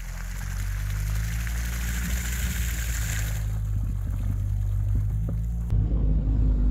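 An engine rumbles as a quad bike churns through mud.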